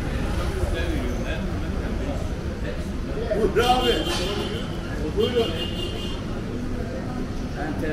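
Men talk in a large echoing hall.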